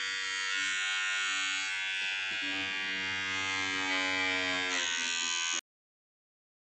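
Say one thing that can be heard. A brush scrubs against a scalp.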